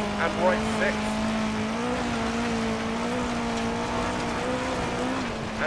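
A car engine hums steadily at high revs.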